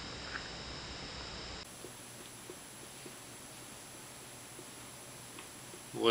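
A man chews food with his mouth closed.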